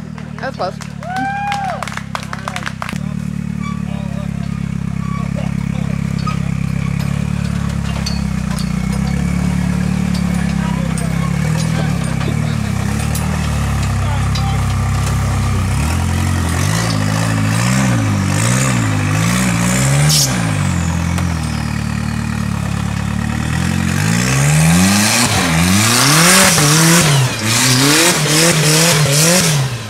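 An off-road buggy's engine revs loudly, rising and falling as it climbs over rocks.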